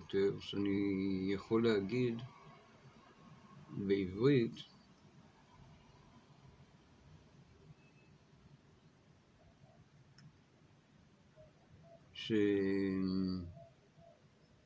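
An elderly man speaks slowly and hoarsely, close to the microphone, in short bursts with long pauses.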